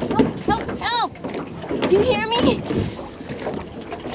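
Oars splash in the water.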